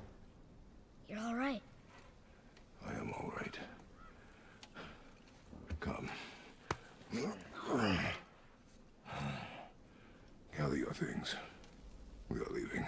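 A deep-voiced man speaks calmly and low up close.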